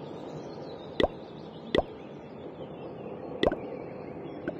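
Short electronic click sounds from a game menu chime as buttons are tapped.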